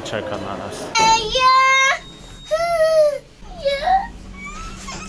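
A small child calls out in a high, sing-song voice.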